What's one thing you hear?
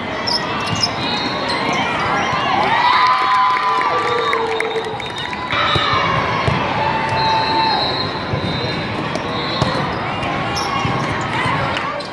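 A crowd of girls and spectators cheers and shouts.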